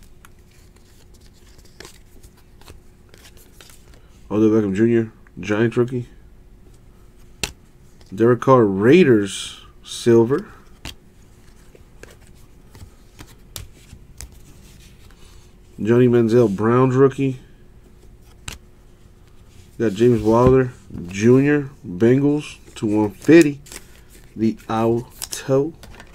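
Trading cards slide and rustle softly against each other.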